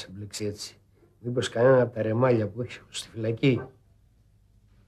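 A middle-aged man speaks calmly and closely.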